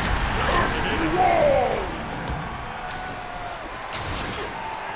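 Weapons strike with sharp hits.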